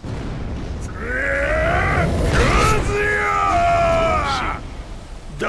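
A deep-voiced man shouts angrily, with a gruff, menacing tone.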